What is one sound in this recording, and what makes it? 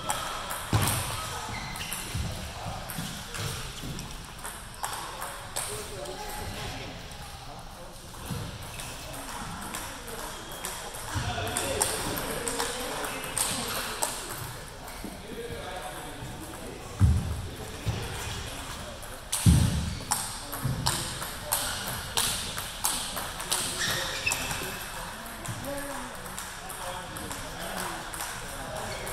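A table tennis ball clicks sharply against bats and the table.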